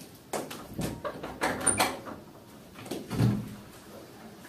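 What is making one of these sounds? A door clicks and creaks open.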